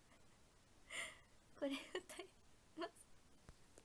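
A young woman giggles.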